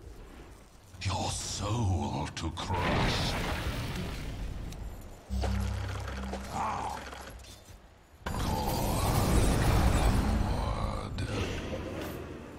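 Magical blasts whoosh and crackle.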